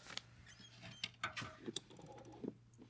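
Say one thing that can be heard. A dial timer clicks as it is turned.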